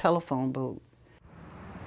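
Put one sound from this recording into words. An elderly woman speaks calmly and slowly, close by.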